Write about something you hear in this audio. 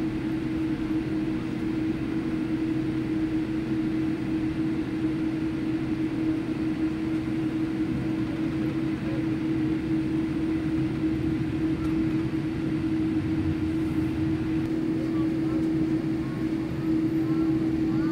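Jet engines hum steadily inside an airliner cabin as it taxis.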